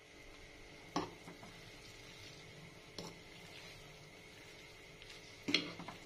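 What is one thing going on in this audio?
A metal fork clinks against a plastic bowl.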